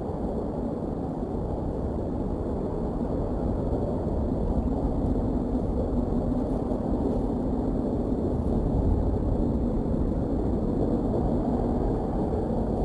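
Dry grass and sticks rustle as a large bird shifts on its nest.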